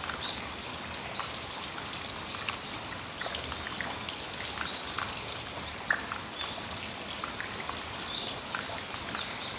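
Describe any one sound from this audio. Rain patters steadily on a metal roof.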